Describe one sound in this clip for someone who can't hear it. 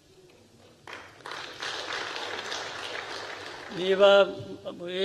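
An audience applauds briefly.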